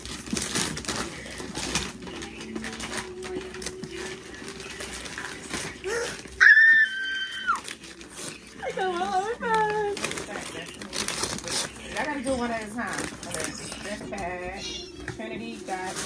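Paper and tissue rustle and crinkle close by.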